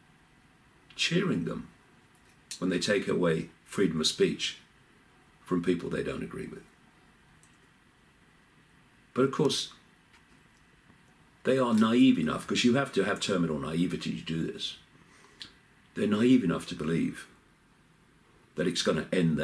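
An older man speaks calmly close to a microphone, with pauses.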